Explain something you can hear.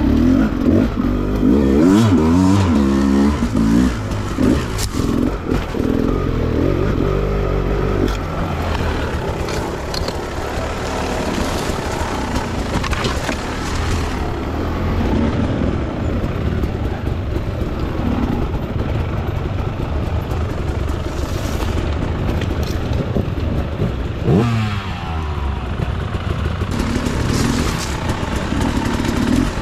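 Other dirt bike engines rev nearby.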